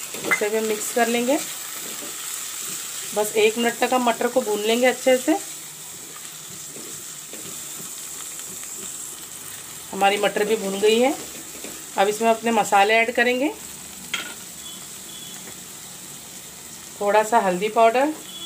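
A spatula scrapes and stirs food in a frying pan.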